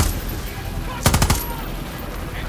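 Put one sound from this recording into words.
An explosion booms loudly.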